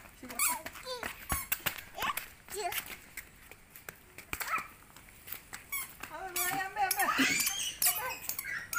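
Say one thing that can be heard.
Young children chatter and squeal nearby.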